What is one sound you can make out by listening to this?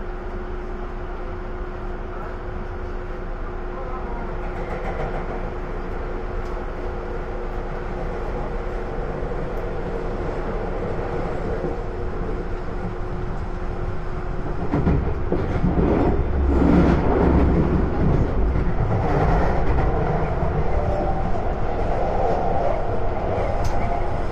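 An electric commuter train's motors hum as it runs along the track.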